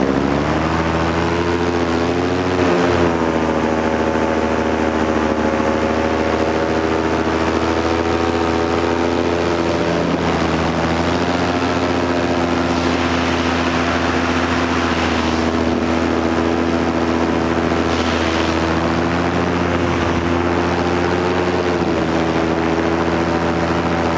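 A paramotor engine drones in flight, its pitch shifting with the throttle.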